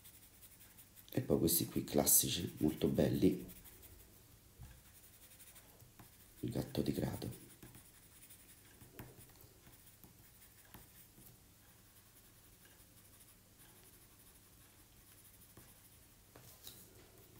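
A pencil scratches and scrapes softly on paper.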